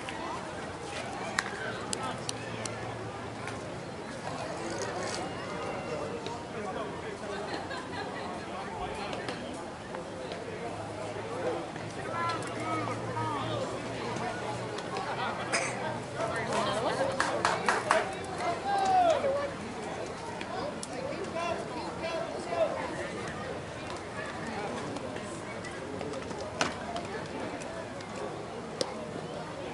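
Men chatter and call out to each other at a distance outdoors.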